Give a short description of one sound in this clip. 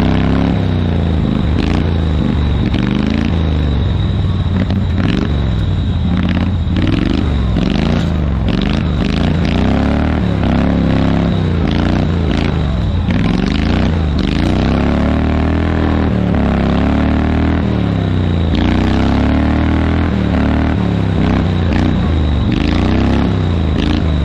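A small engine revs up and down loudly, close by.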